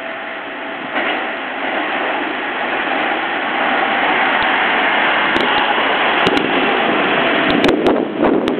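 A train approaches and rushes past close by with a loud rumble and roar.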